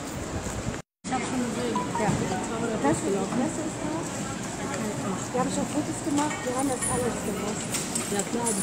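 A crowd of men and women talk and call out nearby.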